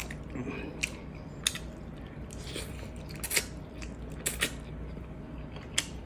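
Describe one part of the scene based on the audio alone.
Fingers tap and scrape against a plate of food.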